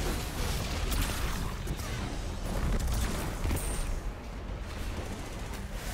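Rapid energy gunfire crackles and bursts.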